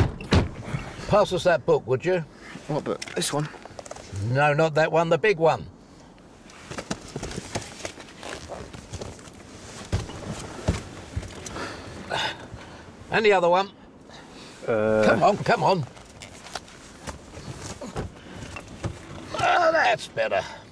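An elderly man speaks with animation, close by.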